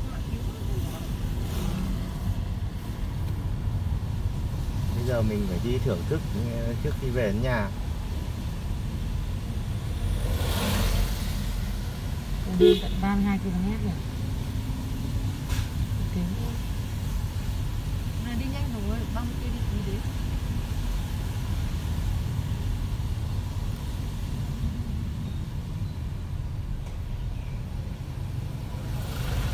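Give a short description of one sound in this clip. A car engine rumbles steadily while driving.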